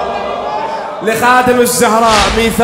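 A large crowd of men chants along.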